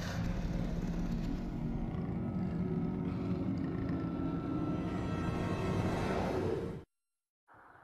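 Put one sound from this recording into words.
Drums and cymbals are played hard and fast.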